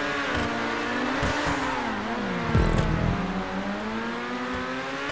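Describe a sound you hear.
Race car engines roar and whine, shifting pitch as they speed up and slow down.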